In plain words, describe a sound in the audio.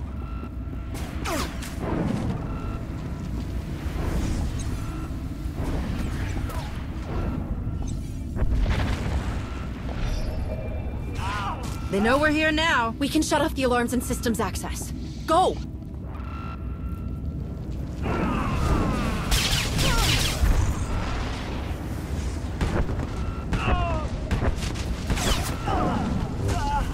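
Energy blades hum and swish through the air in a fight.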